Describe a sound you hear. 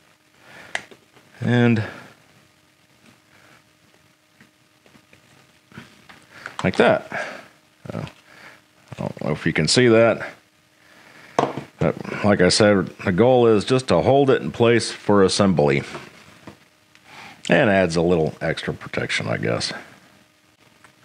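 Hard plastic parts knock and rattle softly as hands handle them.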